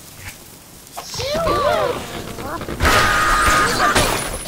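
A cartoon bird squawks as it flies through the air.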